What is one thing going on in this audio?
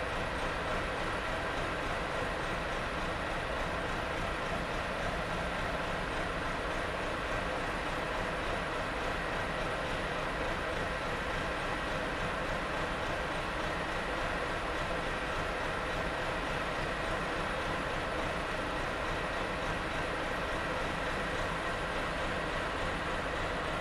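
A loader's diesel engine runs steadily nearby.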